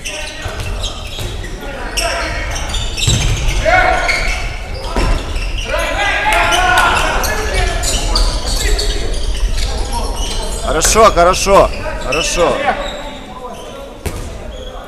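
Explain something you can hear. A handball bounces on the floor.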